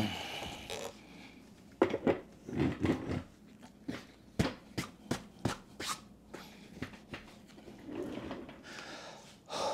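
Plastic parts of an office chair knock and clatter.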